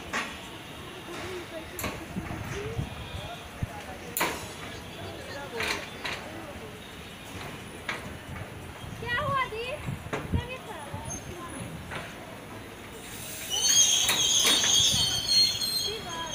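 A train rolls slowly past with wheels clattering over rail joints.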